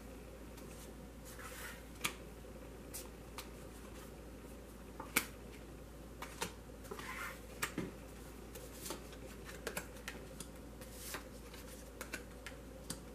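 Playing cards tap and slide softly onto a cloth-covered table.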